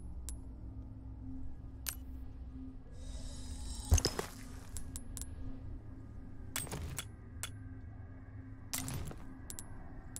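Game menu clicks and chimes sound as items are selected.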